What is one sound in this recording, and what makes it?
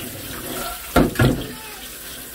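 A metal strainer knocks against a sink.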